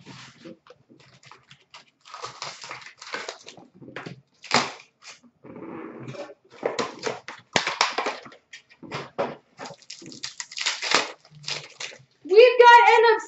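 Foil card packs crinkle and rustle in hands.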